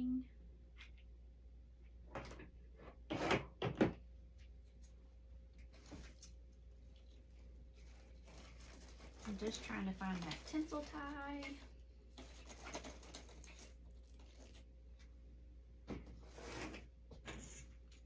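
A woman rustles and crinkles dry decorative material by hand.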